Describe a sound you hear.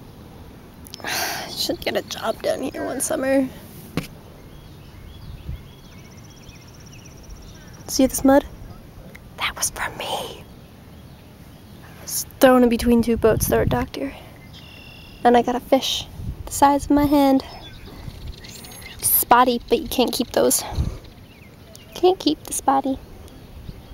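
A young woman talks close by, with animation, in short bursts.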